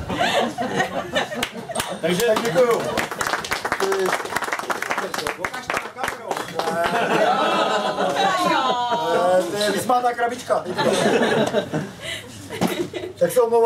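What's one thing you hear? A group of men laugh and chatter nearby.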